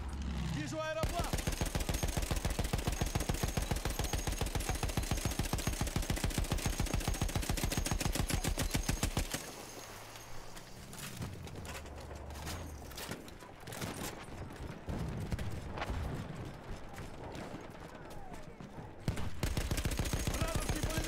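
A heavy machine gun fires long, rapid bursts close by.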